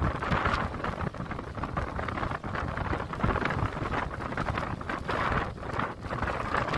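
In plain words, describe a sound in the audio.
Blizzard wind gusts and roars, driving snow through the air.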